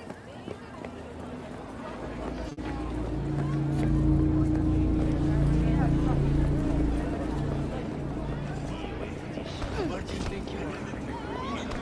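Footsteps patter on a paved walkway.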